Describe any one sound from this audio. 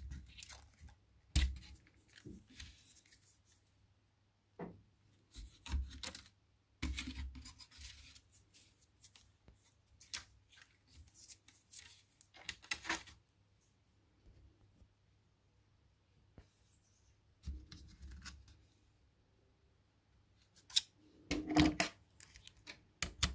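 Small plastic and metal parts click and rattle under fingers, close by.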